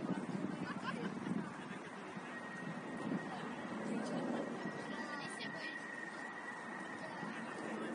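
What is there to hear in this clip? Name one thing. Young players shout to each other in the distance outdoors.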